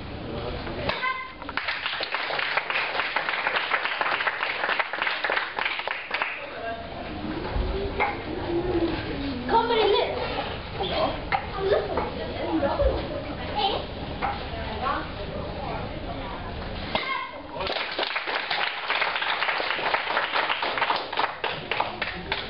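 A group of children clap in a room that echoes.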